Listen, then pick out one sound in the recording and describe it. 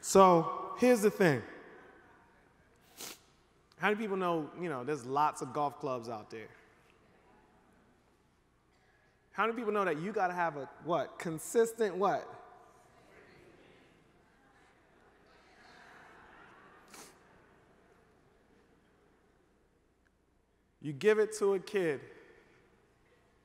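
A man speaks with animation through a microphone in a large hall, with pauses between phrases.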